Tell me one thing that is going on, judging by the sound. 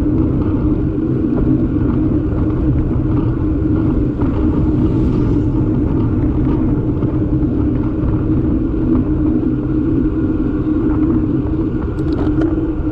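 Wind rushes loudly past, outdoors while riding.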